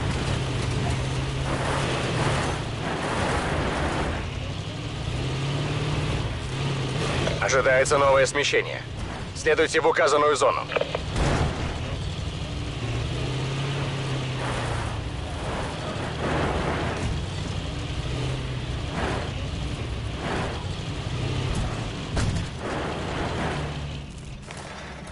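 A truck engine rumbles steadily, rising and falling in pitch.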